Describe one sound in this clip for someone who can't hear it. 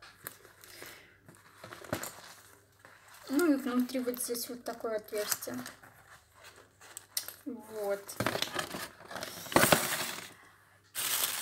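Stiff fabric and packaging rustle as a bag is handled.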